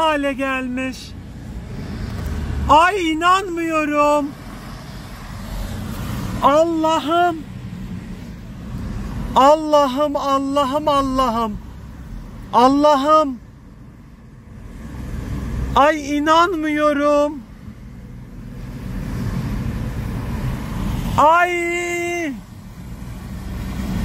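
A car engine hums and tyres roll over a wet road.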